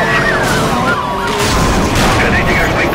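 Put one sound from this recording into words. A car smashes through a breaking wall with a loud crash.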